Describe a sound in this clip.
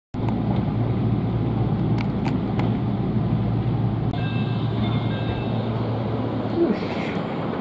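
A train rumbles along the tracks, heard from inside the carriage.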